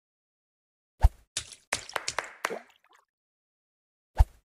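A stone splashes into water several times.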